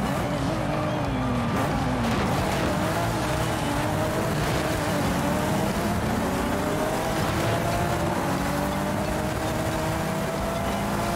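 A race car engine roars loudly, its pitch rising and dropping with gear changes.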